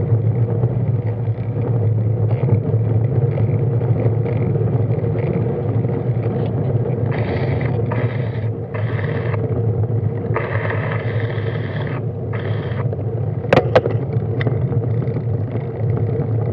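An estate car drives slowly just ahead.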